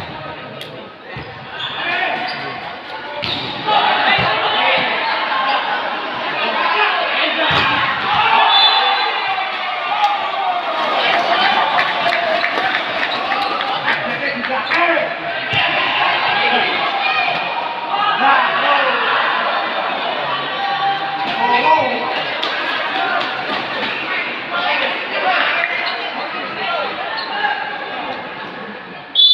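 A crowd of spectators cheers and shouts loudly in a large echoing hall.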